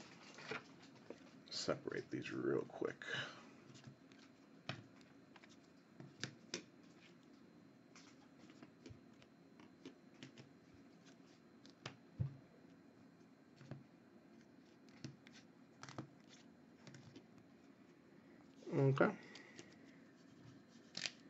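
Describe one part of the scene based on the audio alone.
Plastic card cases click and clack as hands shuffle through them.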